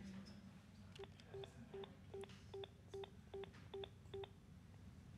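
A cordless phone rings with a quick repeating electronic chirp.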